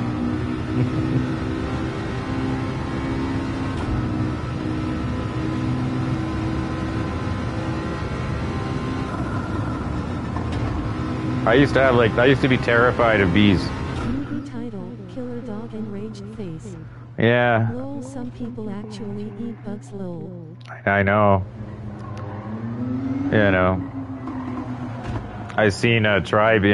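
A racing car engine roars at high speed, its pitch rising and dropping sharply as it shifts gears.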